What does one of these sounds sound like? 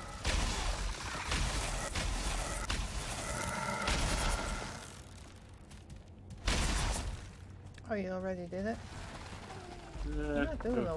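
Footsteps thud on rough ground.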